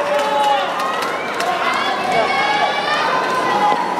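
Young women players shout to each other on the court.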